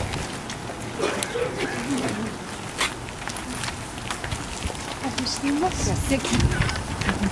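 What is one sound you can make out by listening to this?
Young women talk quietly nearby as they walk.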